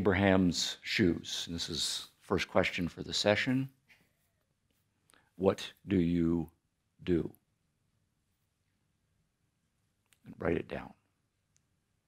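A man speaks slowly and thoughtfully into a microphone, pausing between phrases.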